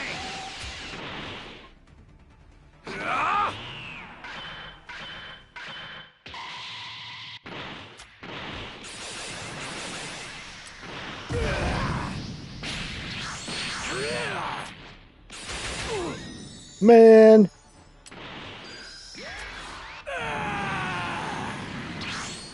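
A powerful energy surge whooshes and roars.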